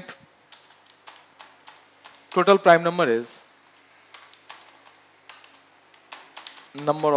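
Keys click on a keyboard in short bursts of typing.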